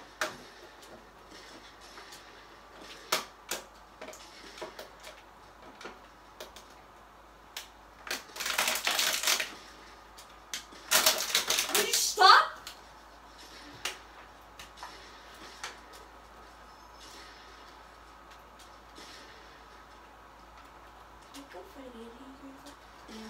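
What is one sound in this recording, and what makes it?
A video game's sound effects play from a television, with short clicks and louder bursts.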